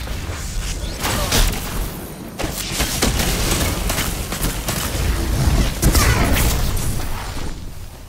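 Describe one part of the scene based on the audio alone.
Electric blasts crackle and roar in a game.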